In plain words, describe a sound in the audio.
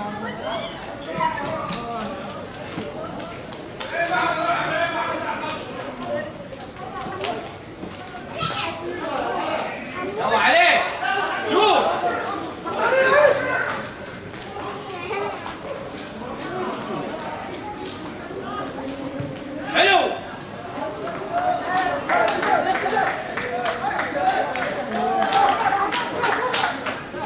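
Young men shout and call out to each other across an open, echoing stadium.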